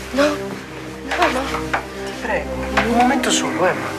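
A young woman speaks and laughs close by.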